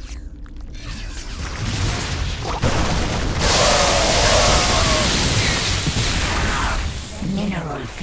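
Guns fire rapidly and explosions rumble in a noisy battle.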